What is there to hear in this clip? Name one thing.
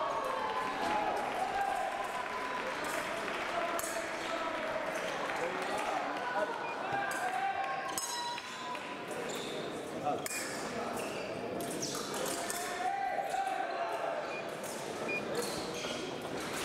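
Fencers' feet tap and shuffle on the floor.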